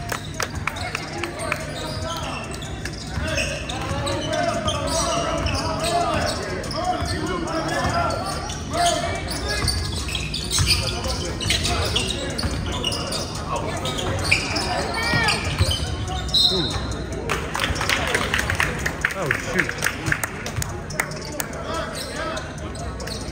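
Young men shout and call out across the gym.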